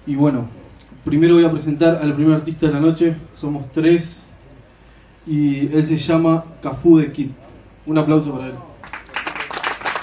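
A man raps rhythmically into a microphone, heard through loudspeakers.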